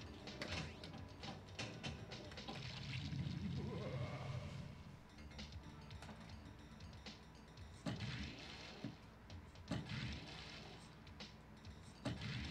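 Electronic pinball sound effects and jingles play.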